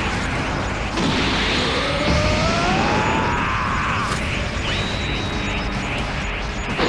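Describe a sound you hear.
A crackling energy blast roars and whooshes.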